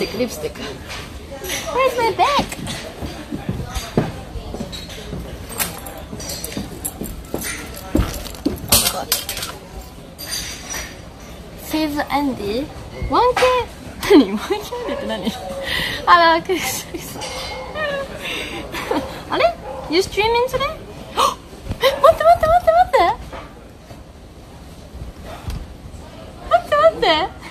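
A young woman talks close to the microphone with animation.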